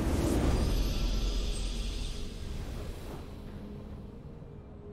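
A triumphant victory fanfare swells and rings out.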